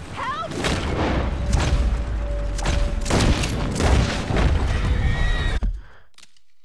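A horse-drawn wagon rumbles along.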